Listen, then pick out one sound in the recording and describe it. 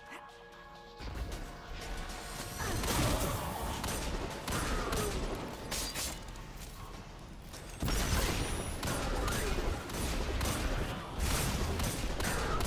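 Rapid gunfire bursts and explosions ring out.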